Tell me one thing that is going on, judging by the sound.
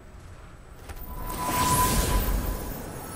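A magical blast bursts with a loud whooshing crackle.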